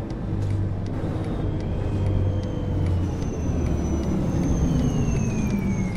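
A bus's brakes squeal as the bus slows down.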